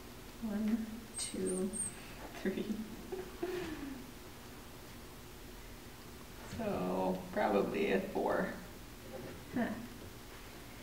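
A young man talks softly and warmly to a puppy, close by.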